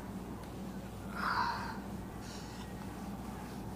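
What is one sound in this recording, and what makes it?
A cloth eraser rubs across a whiteboard.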